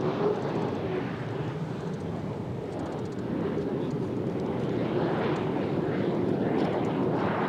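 A powerboat engine roars at high speed.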